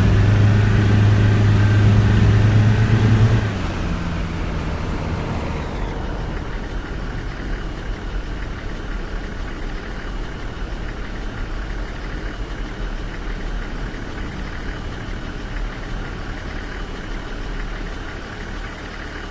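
Tyres roll steadily on a road.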